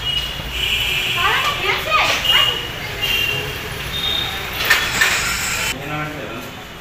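People talk and bustle in a busy echoing hallway.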